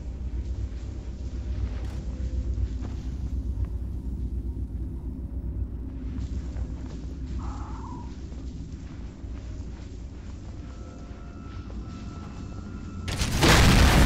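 Water rushes and swirls steadily.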